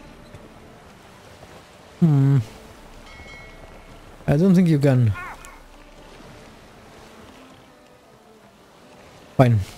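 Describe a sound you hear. Choppy water splashes against a small sailing boat.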